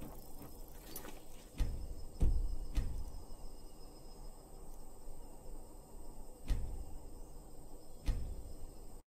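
Menu clicks sound sharply, a few times.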